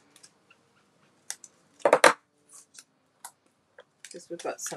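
Paper rustles and taps as cardstock is handled.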